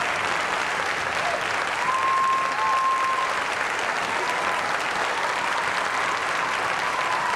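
An audience claps and applauds steadily in a large hall.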